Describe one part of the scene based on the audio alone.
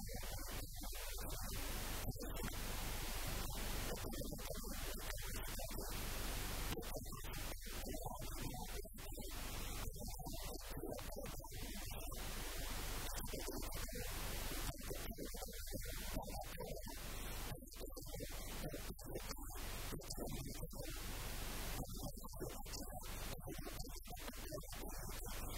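An elderly man speaks calmly and at length into a close microphone.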